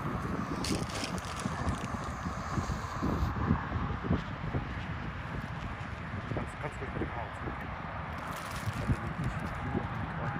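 A smoke flare hisses steadily as it burns on the ground.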